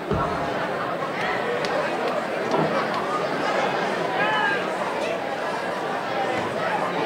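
Young people chatter and call out in a large echoing hall.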